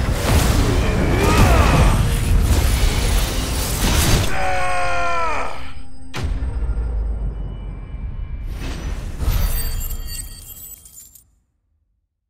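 Lightning crackles and booms in a loud, roaring blast.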